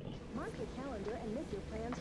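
A woman gasps in surprise close by.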